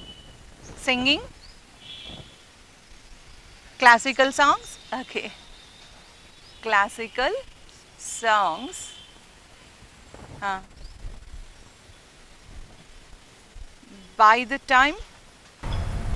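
A woman speaks clearly and slowly nearby.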